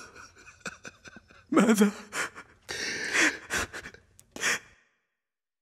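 A man speaks in a low, sorrowful voice.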